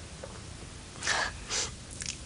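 A woman sniffles.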